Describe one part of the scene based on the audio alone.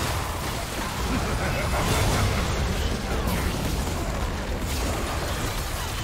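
Magic blasts and weapon strikes clash in a fast, busy battle.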